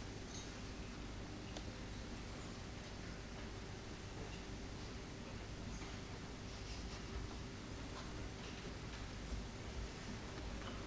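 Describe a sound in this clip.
A man reads aloud from a stage in a large hall.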